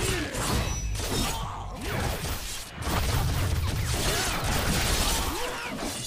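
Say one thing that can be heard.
Metal claws slash through the air.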